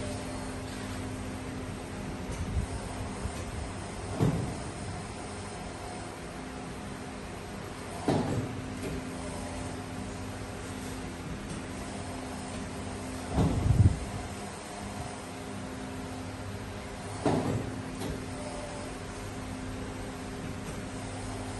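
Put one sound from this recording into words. An industrial machine hums steadily.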